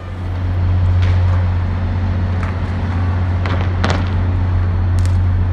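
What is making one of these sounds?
A bicycle lands with a clatter on concrete.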